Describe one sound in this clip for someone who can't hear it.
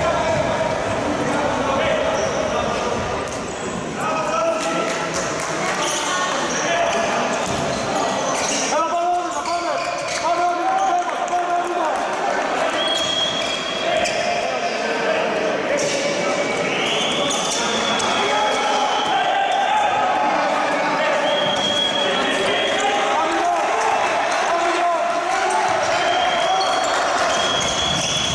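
Spectators chatter and shout in a large echoing indoor hall.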